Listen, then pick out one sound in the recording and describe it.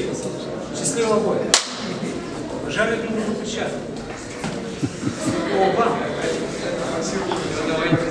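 A man calls out commands in a large echoing hall.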